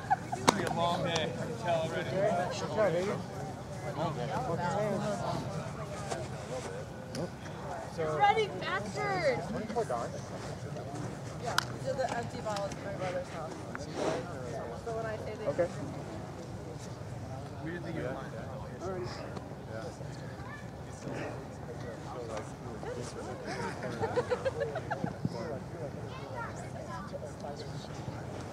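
Several men talk and call out across an open field outdoors.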